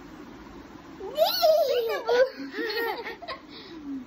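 A young child speaks and squeals playfully, close by.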